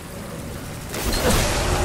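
A game gun is swapped for another with a loud metallic clatter.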